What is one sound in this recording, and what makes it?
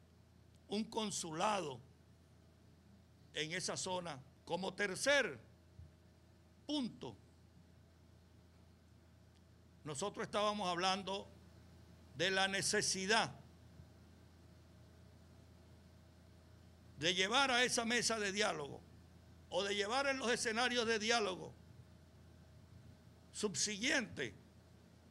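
An older man speaks into a microphone with emphasis, in short bursts with pauses.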